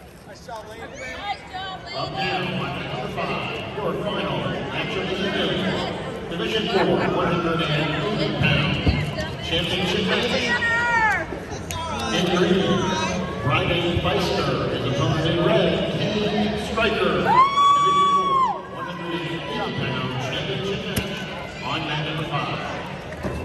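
Many people talk at once in a large echoing hall.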